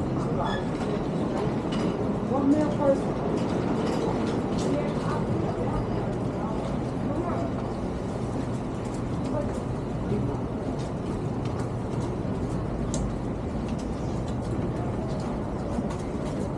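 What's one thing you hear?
Footsteps tap along a covered sidewalk.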